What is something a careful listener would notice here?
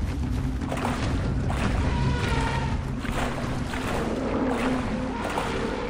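Water splashes and ripples as a swimmer moves through it.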